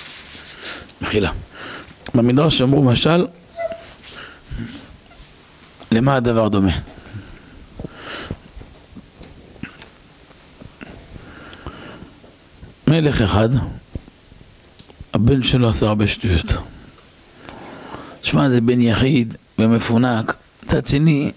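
A middle-aged man speaks slowly into a microphone, with long pauses, in a room with a slight echo.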